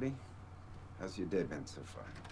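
A man asks a question in a calm, friendly voice.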